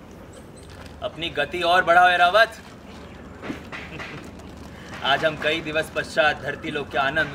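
A young man speaks forcefully and theatrically, close by.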